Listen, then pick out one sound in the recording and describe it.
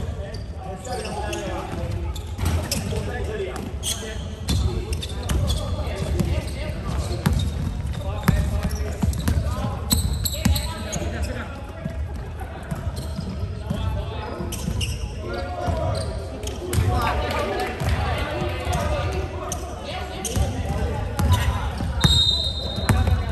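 A crowd of spectators chatters and calls out in the background.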